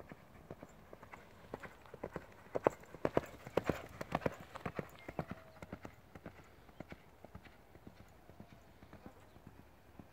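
A horse's hooves thud on sandy ground at a canter, loud close by and then fading into the distance.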